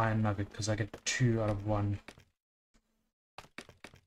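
Blocks are placed with short soft knocks.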